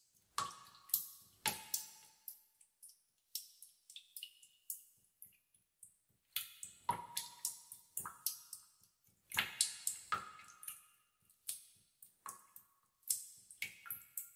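Water drops fall and plink into still water, one after another.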